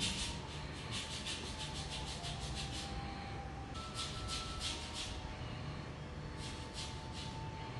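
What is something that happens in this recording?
A small metal tool scrapes rapidly at toenails in short bursts.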